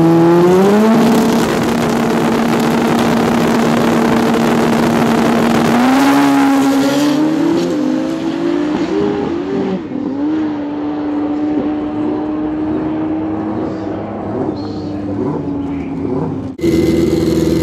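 Pro Street drag racing motorcycles launch and accelerate hard, fading down the strip.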